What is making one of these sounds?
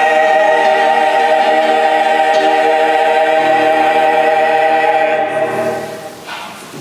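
A mixed choir sings together in a large echoing hall.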